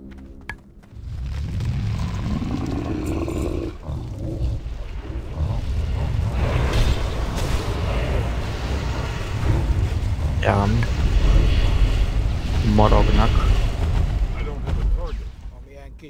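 Fiery spell blasts roar and crackle during a battle.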